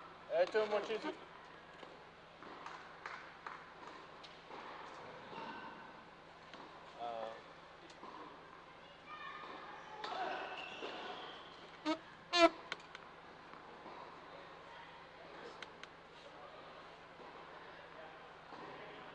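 A tennis ball bounces on a hard court in a large echoing hall.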